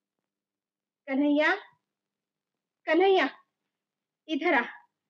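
A woman speaks in short, firm phrases close by.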